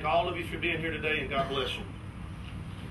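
A middle-aged man speaks calmly through a microphone outdoors.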